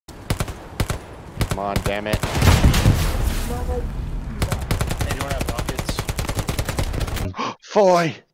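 A gun fires rapid shots close by.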